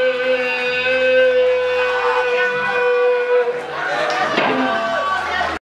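An electric guitar plays loudly in a live band.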